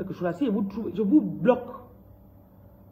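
A woman speaks briefly and with animation, close up.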